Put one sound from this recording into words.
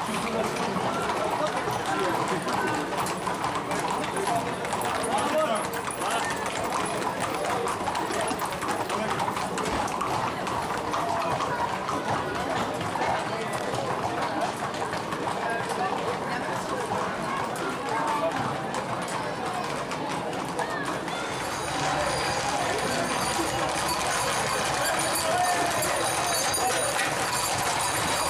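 Horses' hooves clop while they walk on asphalt.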